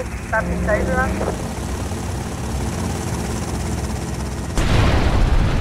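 A motorboat engine hums steadily.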